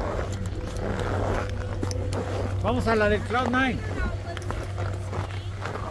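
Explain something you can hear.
A snowboard scrapes across the snow.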